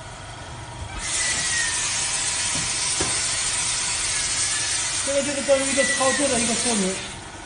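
Fine spray hisses steadily inside a closed chamber.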